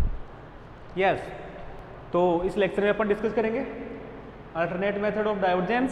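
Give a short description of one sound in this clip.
A young man speaks clearly into a clip-on microphone.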